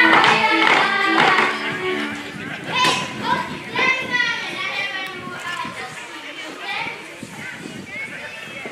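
A folk band of violins and a double bass plays a lively tune outdoors.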